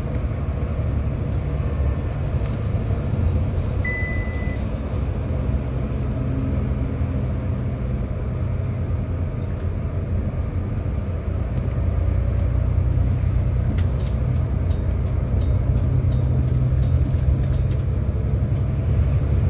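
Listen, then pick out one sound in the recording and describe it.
A bus engine rumbles low and steady as the bus drives along a road.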